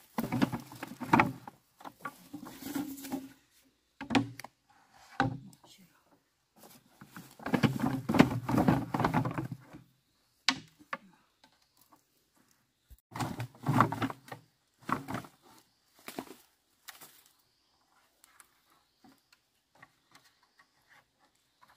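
A rope rustles as it is pulled around a bundle of poles.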